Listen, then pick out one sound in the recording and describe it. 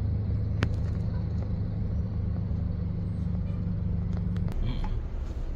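A large bus engine idles nearby with a steady low hum.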